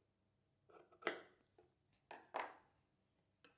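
Scissors snip through cloth.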